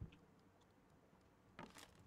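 A wall clock ticks softly.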